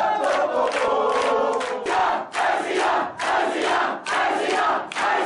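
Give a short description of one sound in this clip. A crowd shouts and sings loudly together.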